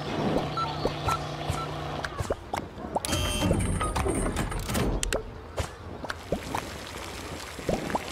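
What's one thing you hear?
Short cartoonish game sound effects pop and clatter.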